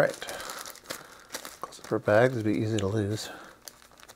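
A plastic bag crinkles.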